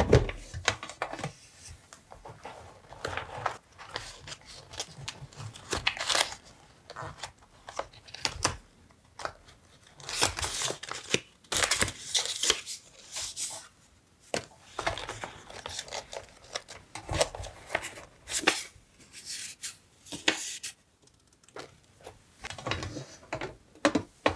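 Papers rustle and crinkle as hands leaf through them.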